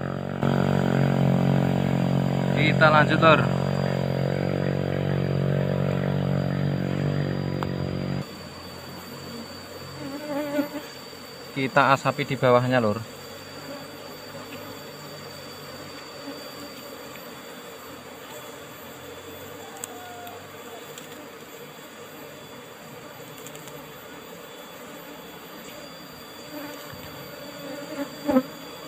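Bees buzz around a hive.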